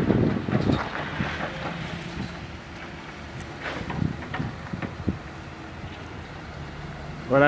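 Heavy machine engines rumble in the distance.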